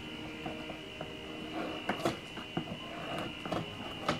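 Scissors cut through tape on a cardboard box.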